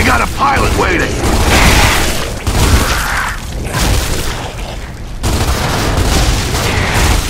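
A rifle fires rapid bursts with loud booming rumble.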